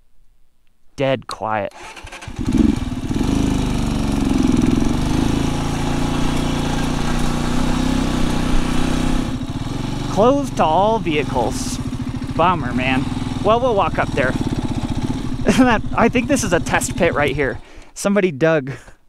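A motorcycle engine runs and revs up and down close by.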